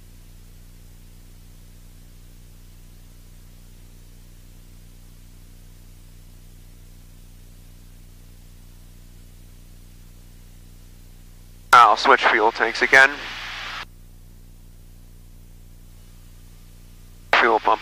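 A small plane's engine drones steadily in flight.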